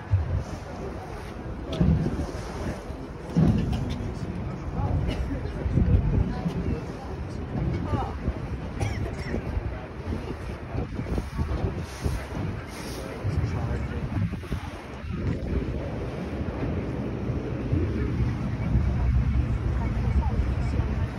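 Water splashes and churns against a moving boat's hull.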